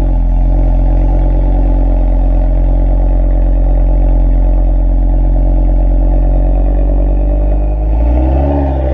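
An Audi RS3's turbocharged five-cylinder engine idles.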